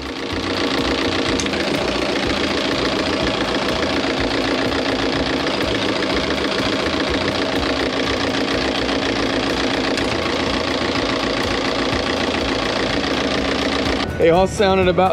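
A diesel engine runs with a steady rumbling clatter.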